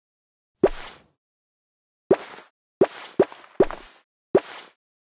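Short bright pops of game sound effects play as accessories change.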